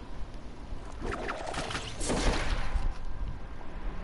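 A glider snaps open with a loud whoosh.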